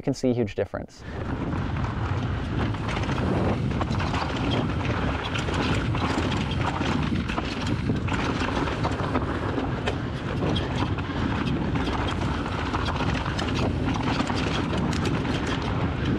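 Bicycle tyres roll and crunch over a rough dirt and gravel trail.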